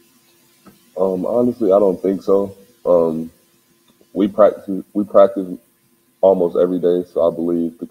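A young man speaks calmly into a microphone close by.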